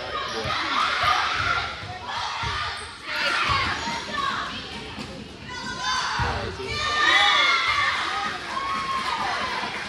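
Players and spectators call out and cheer in a large echoing hall.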